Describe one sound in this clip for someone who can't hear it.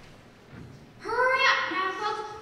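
A girl speaks loudly into a microphone in a large hall.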